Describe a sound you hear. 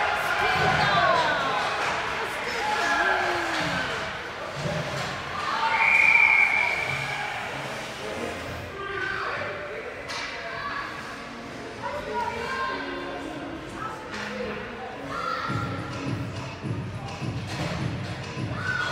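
Ice skates scrape and glide across the ice.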